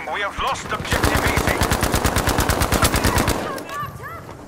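A machine gun fires a rapid, steady burst close by.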